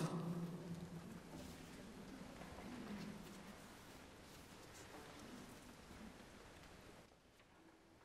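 Strings play along with the choir.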